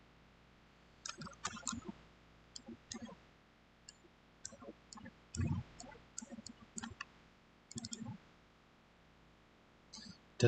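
A man speaks calmly through a microphone in an online call, in short bursts.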